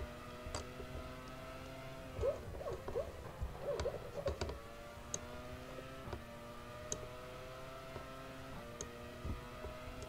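A racing car engine whines at high revs and shifts through the gears.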